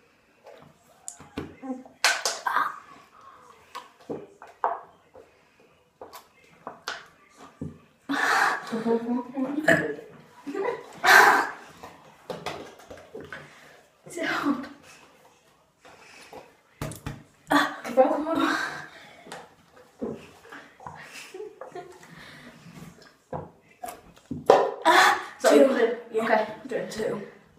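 A boy talks and laughs with animation close by.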